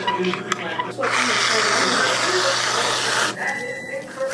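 Whipped cream sprays from a can with a loud hiss.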